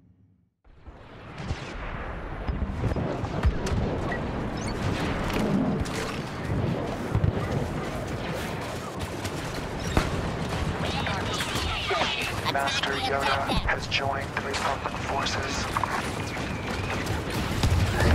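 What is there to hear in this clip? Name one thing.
Blaster rifles fire in rapid bursts.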